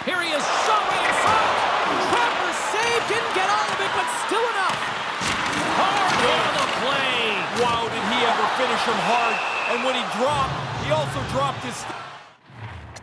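A large arena crowd roars and cheers.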